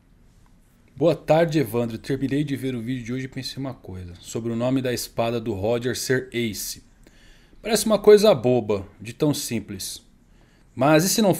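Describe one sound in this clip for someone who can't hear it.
A man speaks calmly and close to a microphone, as if reading out.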